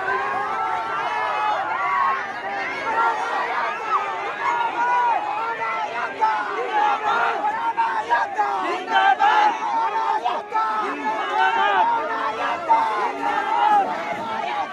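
A large crowd of young men and women shouts and chants loudly outdoors.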